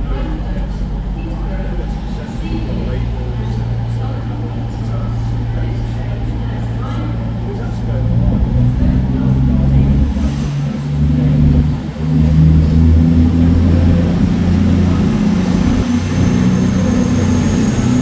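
A diesel train engine rumbles deeply, growing louder as a train draws close.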